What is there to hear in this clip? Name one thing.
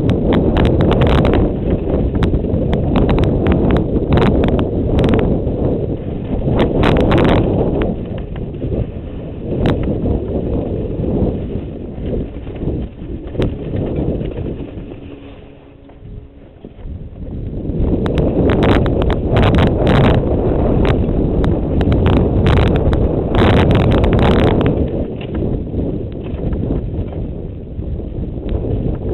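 Wind rushes and buffets loudly past a fast-moving bike rider.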